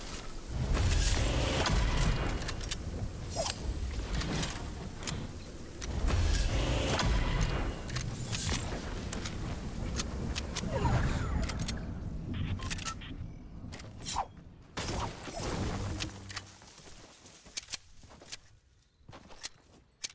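Footsteps patter quickly as a game character runs over grass and road.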